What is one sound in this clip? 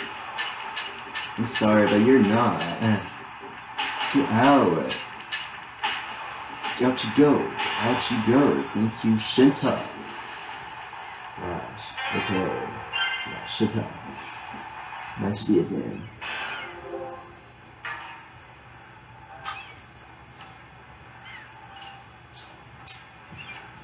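Video game sound effects play from a television loudspeaker.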